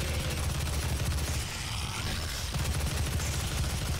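A machine gun fires rapid shots.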